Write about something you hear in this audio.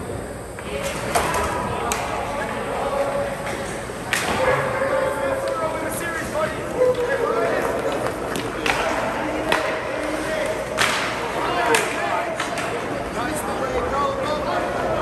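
Players shout to one another across an echoing rink.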